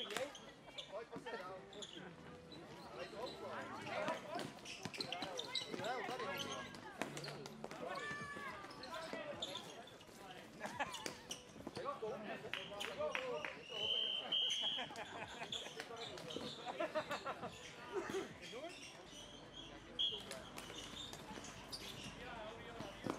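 Players' shoes squeak and thud on the hard court.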